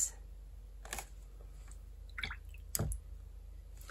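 A paintbrush clinks against a glass jar of water.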